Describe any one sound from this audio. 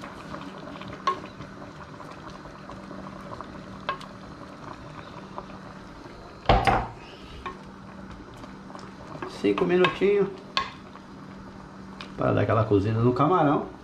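A wooden spoon stirs a stew in a pot, now and then knocking against its side.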